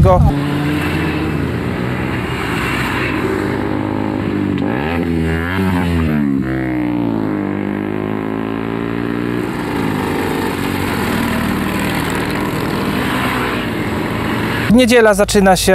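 Motorcycle engines rumble as bikes ride past one by one.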